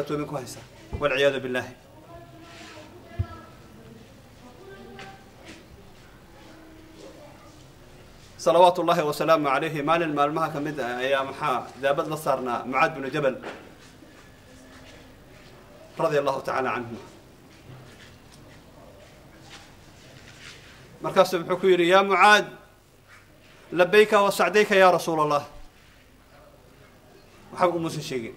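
A middle-aged man speaks into a close microphone in bursts, with pauses between.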